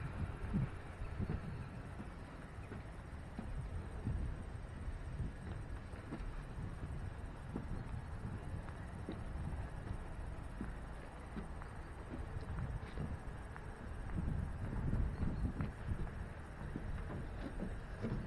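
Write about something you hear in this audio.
Wind blows outdoors and buffets the microphone in gusts.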